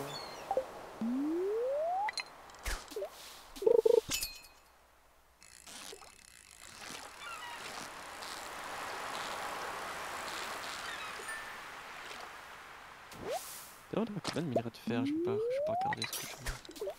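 A fishing line whips out with a rising whoosh.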